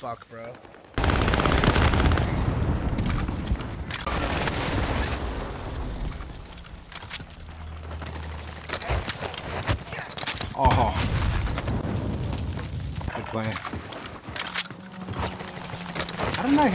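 Rifle gunshots fire in rapid bursts in a video game.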